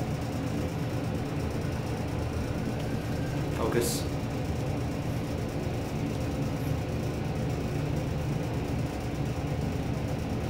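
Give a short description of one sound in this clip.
An escalator hums and rumbles steadily as it runs.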